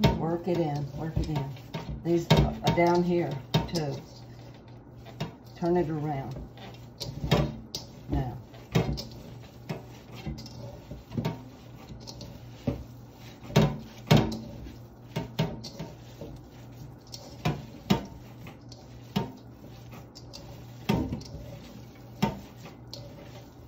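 Hands squish and knead raw ground meat in a metal bowl.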